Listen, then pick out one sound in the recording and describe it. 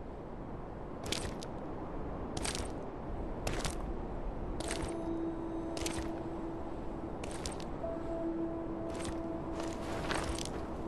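Boots step heavily across loose stones.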